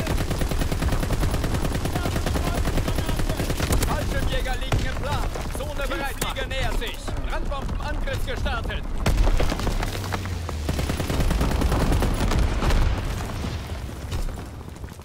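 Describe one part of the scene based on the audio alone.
A heavy machine gun fires in rapid bursts.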